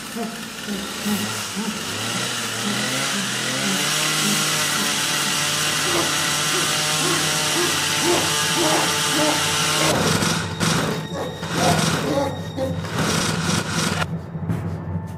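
A chainsaw engine roars and buzzes steadily.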